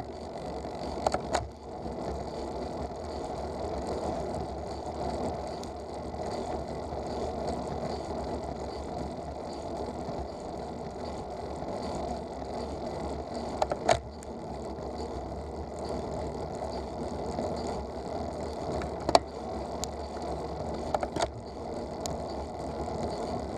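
Tyres rumble steadily on an asphalt road as a vehicle drives along.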